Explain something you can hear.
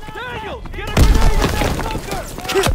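An explosion booms loudly.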